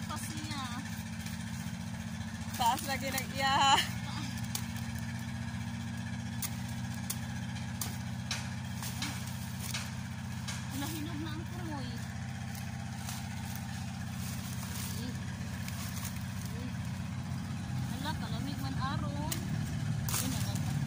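Dry leaves and branches rustle and crackle as they are handled.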